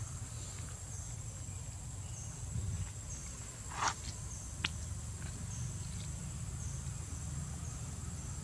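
A monkey chews fruit with soft smacking sounds.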